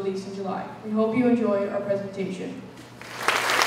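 A boy speaks into a microphone in a large hall.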